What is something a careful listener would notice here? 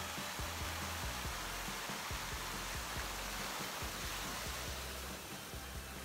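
Fountain water splashes and rushes steadily.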